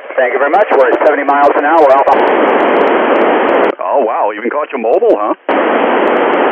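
A radio receiver gives out warbling, chirping signal tones.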